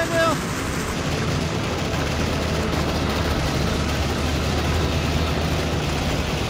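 An armoured vehicle's engine idles with a low, steady rumble.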